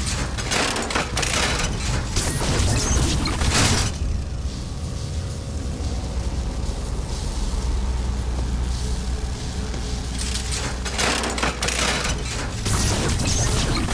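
Electricity crackles and buzzes in loud bursts.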